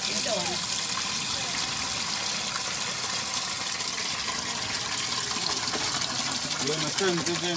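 Liquid pours steadily from a pot into a bucket, splashing.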